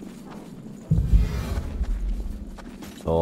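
A heavy blade strikes with a deep booming impact.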